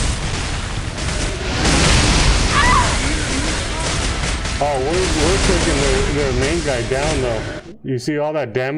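Loud game battle noise roars and crashes.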